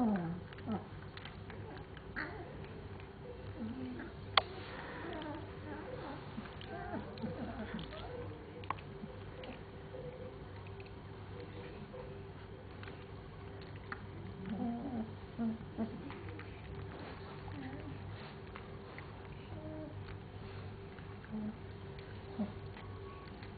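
Puppies whimper and squeak softly close by.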